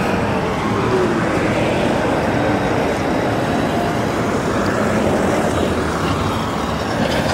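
City traffic hums steadily in the open air.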